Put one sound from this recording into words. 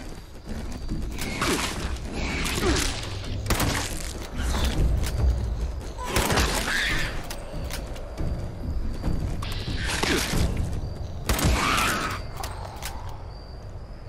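Gunshots bang loudly in quick bursts.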